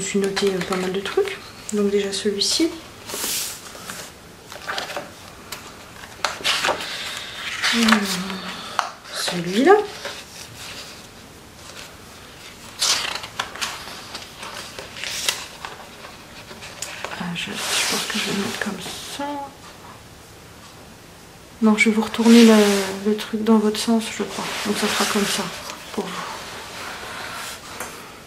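Paper pages rustle and flip as a book is leafed through.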